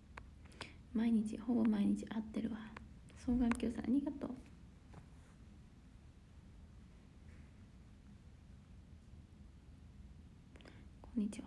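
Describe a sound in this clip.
A young woman speaks softly and closely into a phone microphone.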